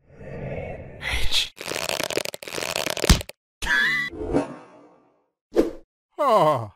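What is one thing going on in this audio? A high, comical cartoon voice yelps and shrieks in alarm.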